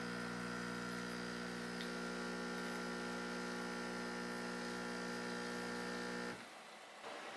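A coffee machine hums steadily as it froths milk.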